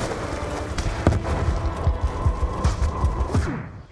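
Gunshots crack in rapid bursts nearby.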